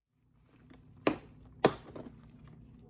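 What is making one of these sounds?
A plastic box lid clicks open.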